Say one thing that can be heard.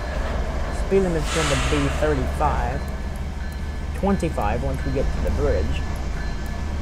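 A locomotive horn blows in several long blasts.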